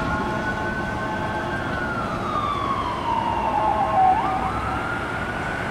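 An engine rumbles as the ambulance pulls away.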